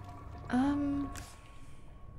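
A young woman speaks briefly into a nearby microphone.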